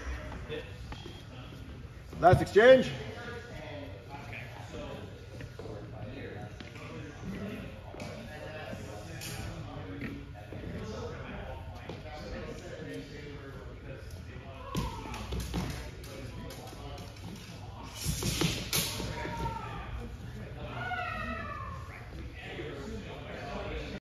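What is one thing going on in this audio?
Footsteps thud and squeak on a wooden floor.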